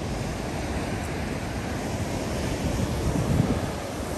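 Sea waves crash against rocks below.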